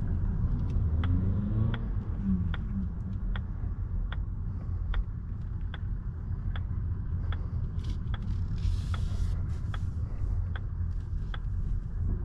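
A car's turn signal ticks at an even pace.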